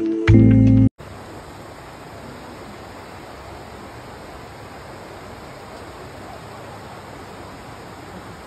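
A shallow stream bubbles and splashes steadily over rocks.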